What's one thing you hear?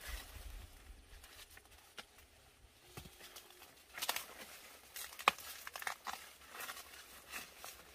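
Corn leaves rustle as a person pushes through them.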